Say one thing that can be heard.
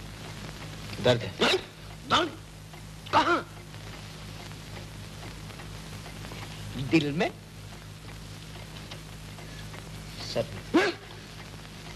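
A second man answers in short remarks.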